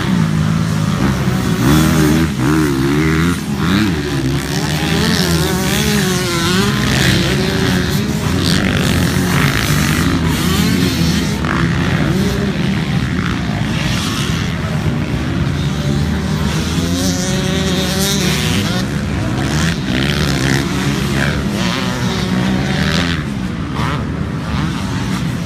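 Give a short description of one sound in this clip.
Dirt bike engines whine and rev, rising and falling outdoors.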